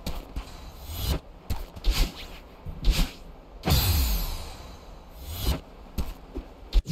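Short electronic whooshes and bursts from a video game sound again and again.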